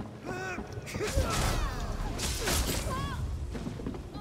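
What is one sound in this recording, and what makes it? A sword clashes and slashes in a short fight.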